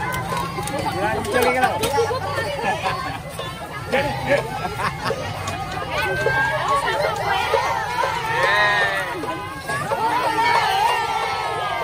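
A crowd of young women chatters and calls out close by outdoors.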